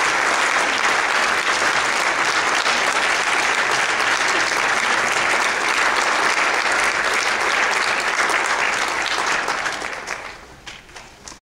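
An audience applauds loudly in a large hall, and the clapping dies away.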